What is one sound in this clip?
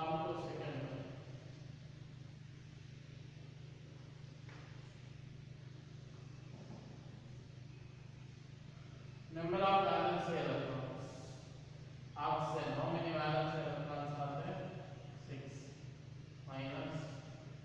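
A man lectures calmly into a nearby microphone.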